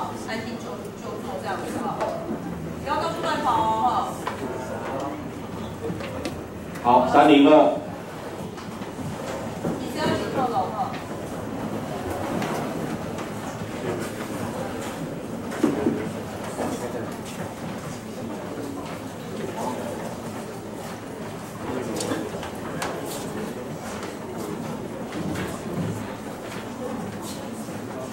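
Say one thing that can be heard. A man speaks with animation into a microphone over a loudspeaker in an echoing room.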